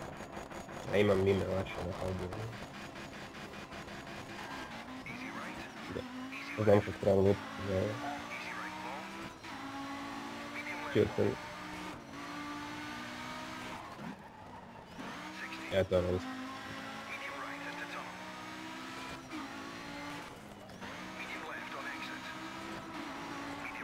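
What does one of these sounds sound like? A rally car engine revs hard and climbs through the gears.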